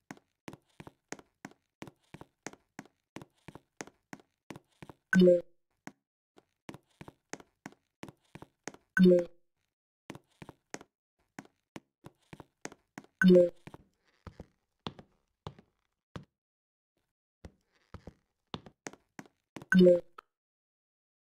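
Quick game footsteps patter steadily.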